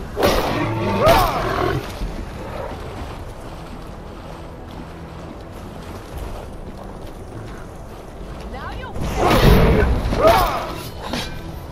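A walrus-like creature bellows and grunts.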